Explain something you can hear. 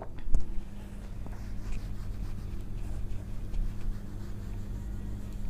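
A felt eraser rubs across a whiteboard.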